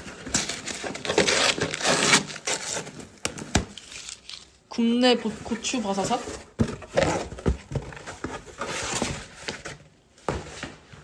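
Cardboard rustles and scrapes as a box is handled close by.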